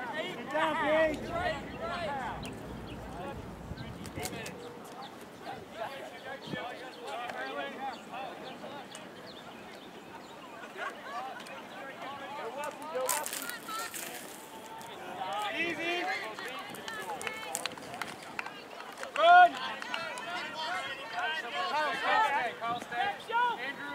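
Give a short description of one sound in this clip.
Young players shout and call out across an open field outdoors.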